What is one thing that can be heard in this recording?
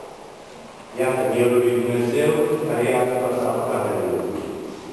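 A man chants in a sustained, singing voice through a microphone.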